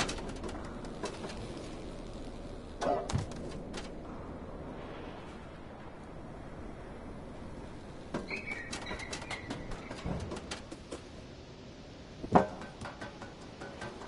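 Rain patters steadily outdoors.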